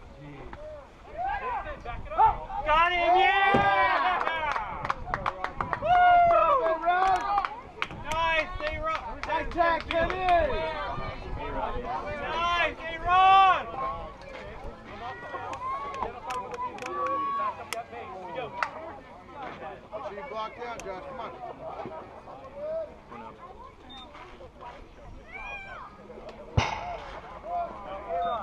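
Young players shout and cheer loudly outdoors.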